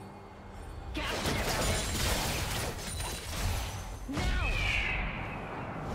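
Magic spell effects whoosh and crackle.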